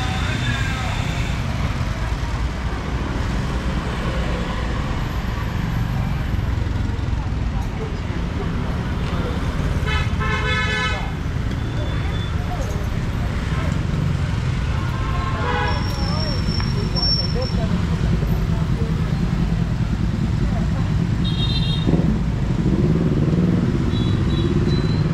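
Motorbike engines hum and rumble steadily along a busy street outdoors.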